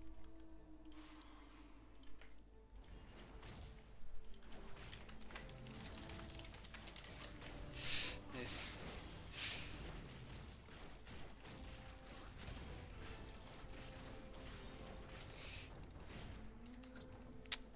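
Game figures clash with bursts of magical blasts and hits.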